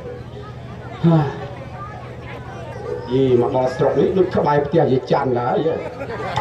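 A man speaks with feeling into a microphone, heard through loudspeakers in an echoing hall.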